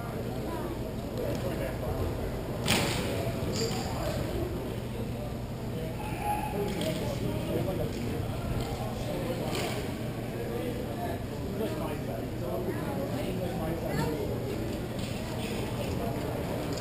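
Skate wheels roll and scrape across a hard floor, echoing in a large hall.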